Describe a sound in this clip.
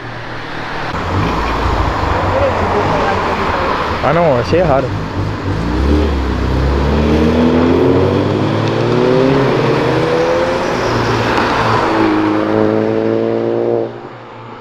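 A car engine rumbles as a car pulls away.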